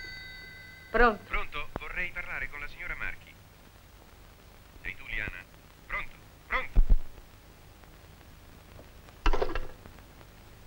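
A woman speaks into a telephone.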